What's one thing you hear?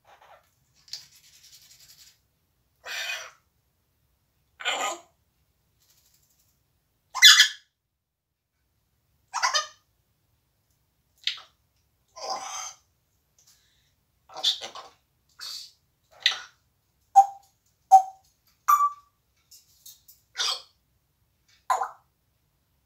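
A parrot squawks loudly in short bursts close by.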